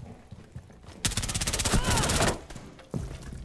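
A rifle fires a rapid burst.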